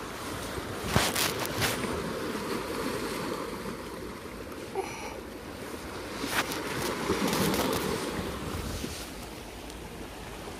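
Sandals scrape and tap on rock.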